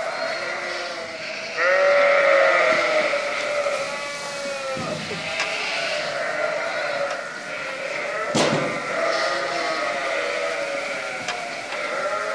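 Many sheep and lambs bleat loudly and continuously, close by.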